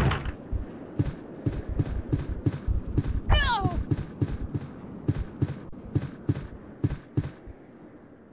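Footsteps tread quickly along a hard floor.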